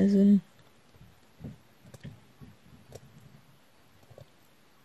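A small plastic tool taps and clicks softly on a board.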